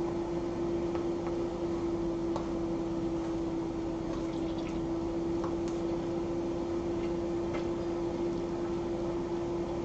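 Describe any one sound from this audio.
A knife chops on a cutting board with soft, irregular taps.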